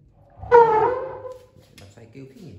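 A hand knocks on a hollow wooden carving, which rings briefly.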